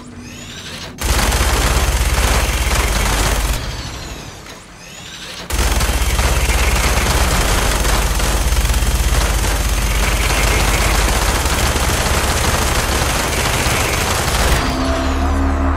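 A heavy gun fires in long, rapid bursts.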